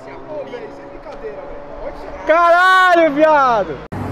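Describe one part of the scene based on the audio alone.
Young men laugh and cheer loudly outdoors.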